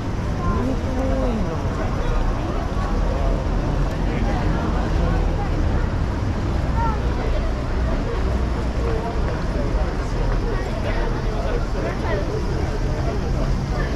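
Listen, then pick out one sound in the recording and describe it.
A busy crowd of people chatters all around outdoors.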